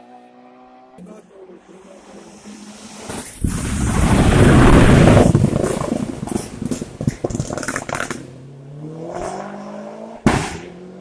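A second racing car engine roars loudly past close by with a rough rasp, then fades away.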